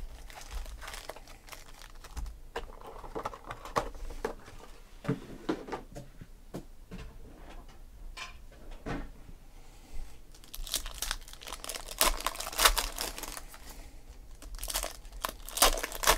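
Foil packs crinkle and rustle as they are handled.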